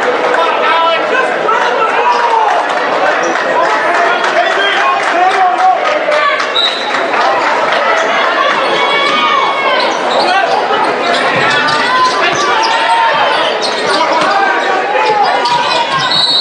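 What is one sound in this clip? A large crowd murmurs and chatters in an echoing gym.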